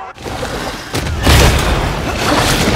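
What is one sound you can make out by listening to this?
Heavy blows land with deep thuds.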